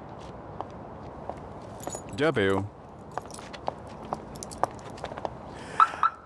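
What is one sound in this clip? Footsteps hurry away on pavement.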